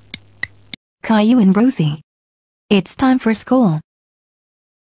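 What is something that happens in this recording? A young boy speaks in a flat synthetic voice.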